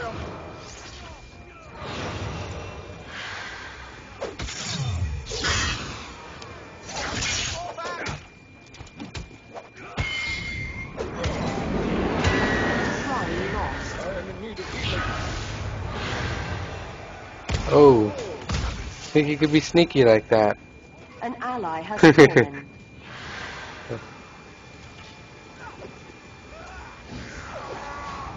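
Game characters clash with hits and impacts.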